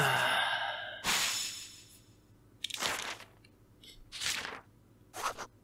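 A book page flips over with a papery swish.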